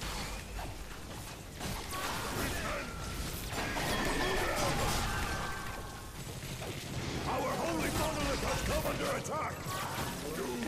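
Laser guns fire in rapid bursts with electronic zaps.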